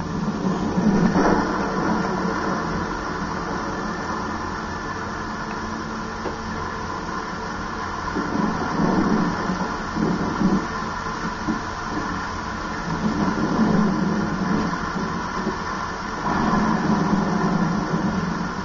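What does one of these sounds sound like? A video game's noises and music play from a television's speakers.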